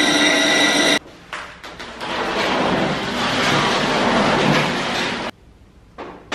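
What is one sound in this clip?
A heavy metal frame scrapes across a concrete floor.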